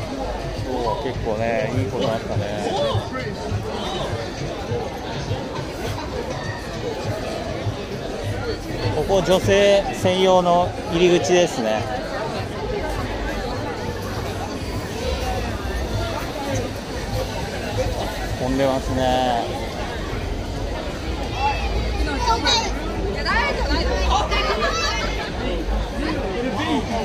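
A crowd of young people chatters all around outdoors.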